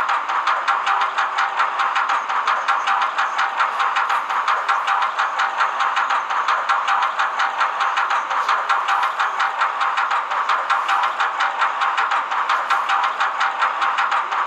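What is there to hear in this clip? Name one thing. A roller coaster's lift chain clacks rapidly and steadily as the train climbs.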